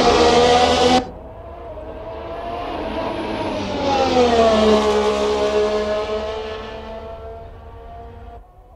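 A racing car engine whines in the distance, then grows louder as the car passes and fades away.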